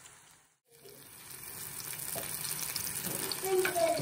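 A wooden spatula scrapes and stirs in a frying pan.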